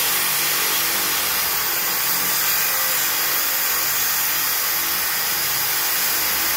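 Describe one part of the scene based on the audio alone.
An electric drill whirs steadily, grinding into glass.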